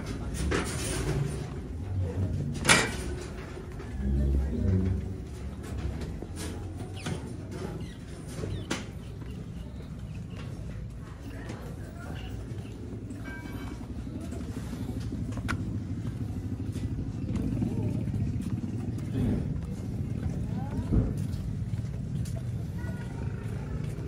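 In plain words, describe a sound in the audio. Footsteps scuff on concrete in a narrow passage.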